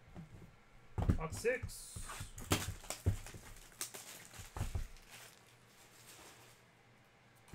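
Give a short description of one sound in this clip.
Cardboard boxes rustle and scrape as hands handle them.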